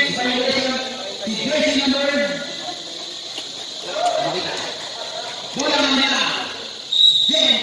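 Young people shout and call out across an outdoor court.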